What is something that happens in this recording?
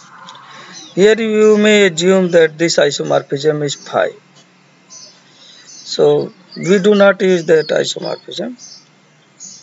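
A man explains calmly, close to a microphone.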